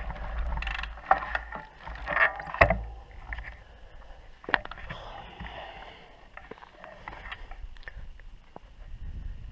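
Bicycle tyres rattle and crunch over a stony trail.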